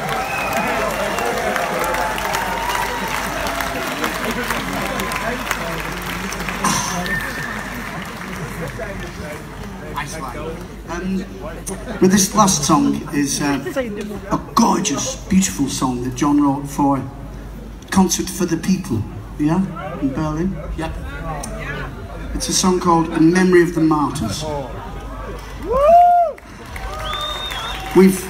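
A band plays live music through loudspeakers, heard from far back in an open-air crowd.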